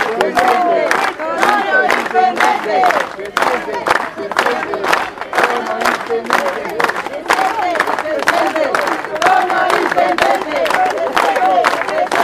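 A crowd of men sings and chants loudly outdoors.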